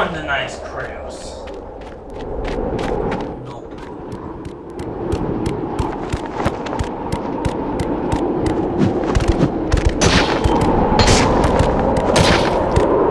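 Quick footsteps patter on stone steps.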